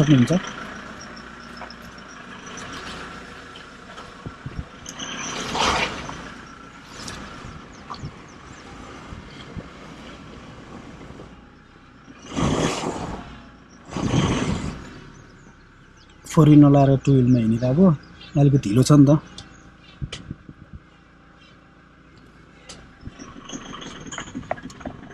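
A car engine hums quietly as the car rolls slowly.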